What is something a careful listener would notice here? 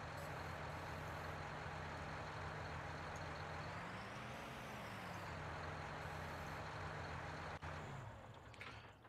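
A tractor engine idles with a steady low rumble, then stops.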